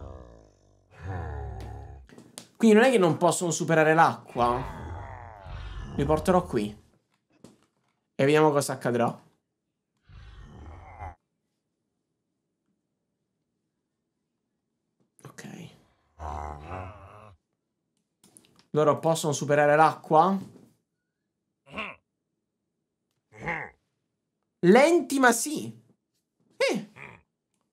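A young man talks with animation close to a microphone, with pauses.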